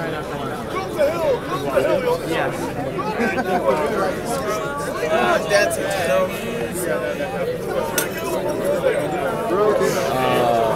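A crowd of young men and women chatter and shout loudly outdoors.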